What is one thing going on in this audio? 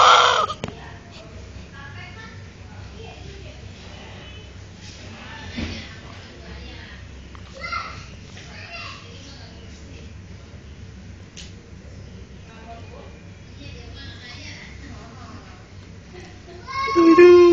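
A newborn baby whimpers and fusses softly.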